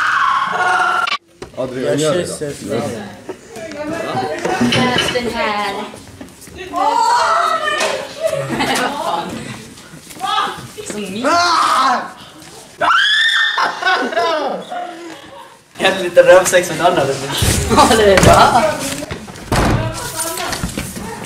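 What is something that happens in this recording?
Young men talk and shout with animation close by.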